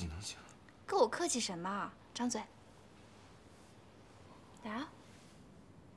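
A young woman speaks gently and coaxingly.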